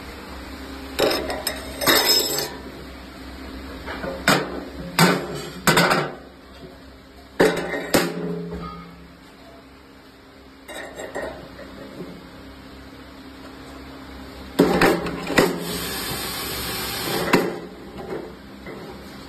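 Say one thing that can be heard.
Metal parts clatter and clunk as hands fit them onto a shaft.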